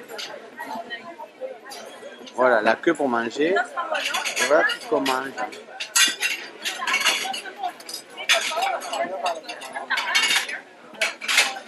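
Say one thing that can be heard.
A crowd chatters in a busy indoor space.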